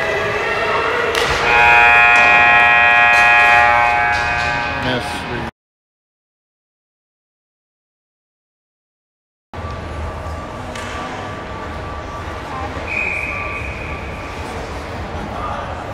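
Skates scrape across the ice in a large echoing arena.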